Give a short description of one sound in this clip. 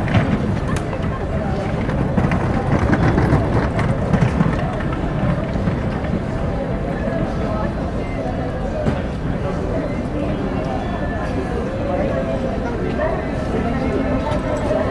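A crowd of passers-by murmurs in the background.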